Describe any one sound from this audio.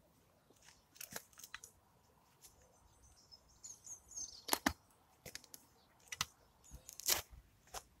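A metal tool stabs and scrapes into grassy soil.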